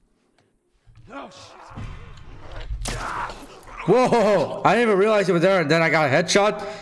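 A young man talks loudly and with animation close to a microphone.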